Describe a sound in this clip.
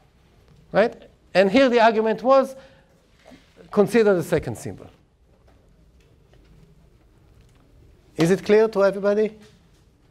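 A middle-aged man speaks calmly in short phrases, with pauses.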